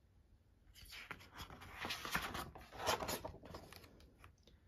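Paper pages rustle as a book page is turned.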